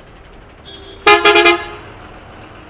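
A bus horn honks loudly.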